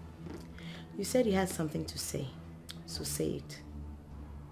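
A young woman speaks calmly and firmly nearby.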